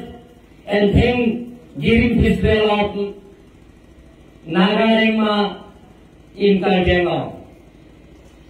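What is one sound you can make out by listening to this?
A man speaks calmly into a microphone over a loudspeaker, outdoors.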